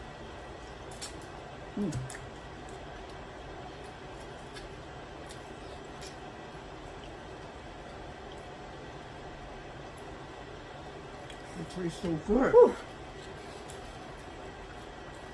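Crab shells crack and click as a woman eats.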